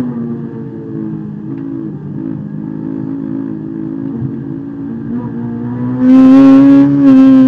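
A car engine drones steadily from inside the cabin, then roars louder as the driver accelerates.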